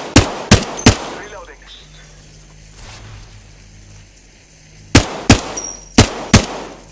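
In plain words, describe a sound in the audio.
A rifle fires sharp, loud shots in short bursts.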